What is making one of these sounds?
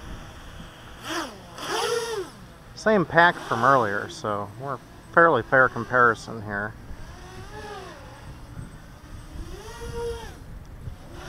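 A racing quadcopter's electric motors whine, rising and falling in pitch.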